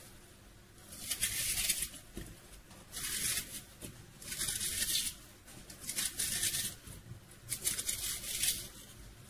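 A knife scrapes across a plate in short bursts.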